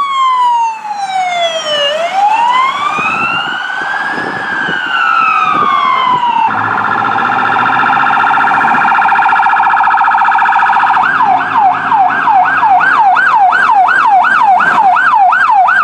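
Vehicle engines rumble as they pass by.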